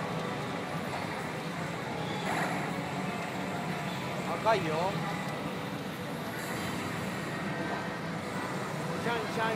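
Small metal balls rattle steadily through a machine.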